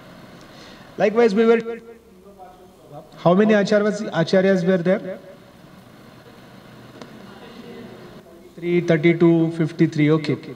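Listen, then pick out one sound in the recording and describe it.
A man speaks calmly through a microphone, in bursts with pauses.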